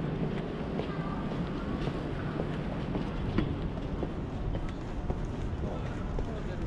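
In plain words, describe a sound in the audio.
Footsteps tap steadily on paving stones close by.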